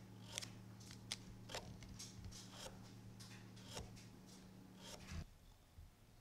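A fine-toothed hand saw cuts through a wooden wedge in short strokes.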